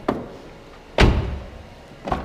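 A car door slams shut with a heavy thud.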